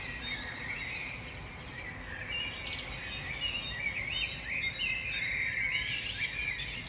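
Small claws scratch and scrabble on tree bark.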